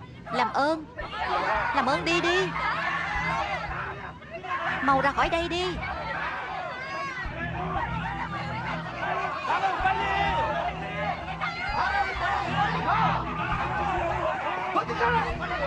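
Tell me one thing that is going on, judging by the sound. A crowd of men and women shouts and murmurs in panic.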